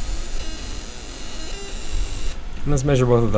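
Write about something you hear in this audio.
A laser marker hisses and whines as it engraves metal.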